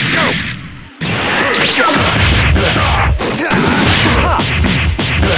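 Punches and kicks land with sharp hits.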